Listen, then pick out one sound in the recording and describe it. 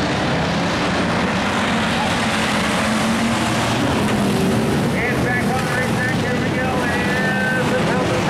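Tyres scrape and spray on loose dirt.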